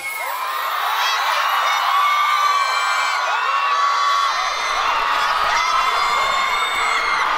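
A crowd of young women screams and cheers loudly.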